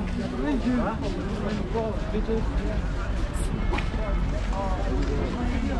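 A crowd of men talk and call out nearby, outdoors.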